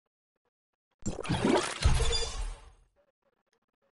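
A bright whooshing flourish plays as an upgrade completes.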